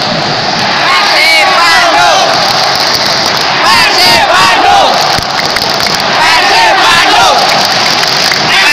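Nearby fans shout and cheer close by.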